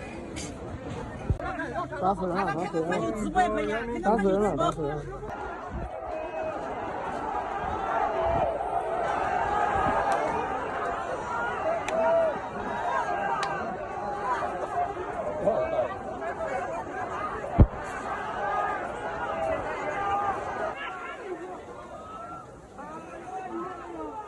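A large crowd of men shouts and clamours outdoors.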